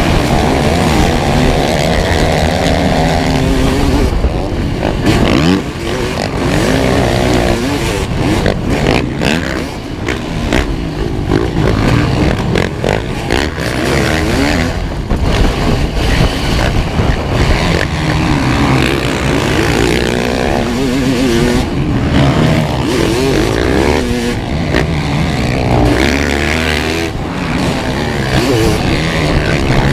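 Other dirt bikes whine nearby.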